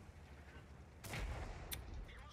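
A tank gun fires with a loud boom.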